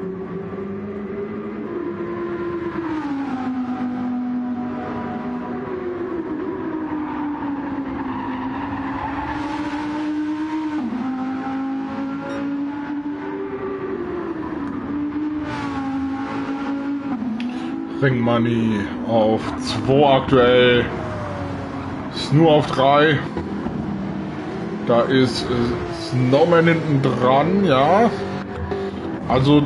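A race car engine roars, its pitch rising and falling as it shifts gears.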